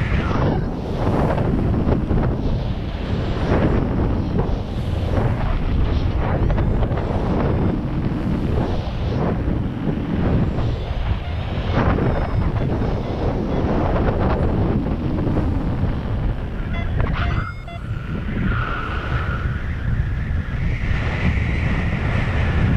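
Strong wind roars and buffets past the microphone.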